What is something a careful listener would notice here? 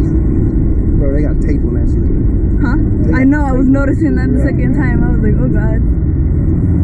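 A young woman talks and giggles up close.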